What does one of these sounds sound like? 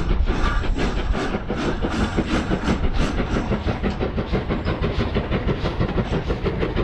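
A model train rumbles along the track with a quick, steady clickety-clack of wheels.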